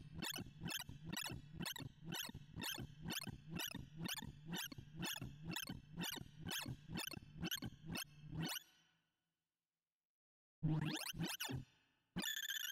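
Electronic tones sweep rapidly up in pitch, over and over.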